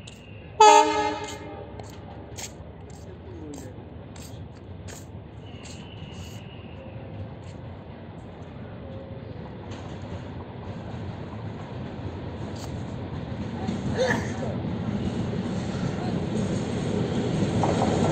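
A train rumbles as it approaches, growing louder.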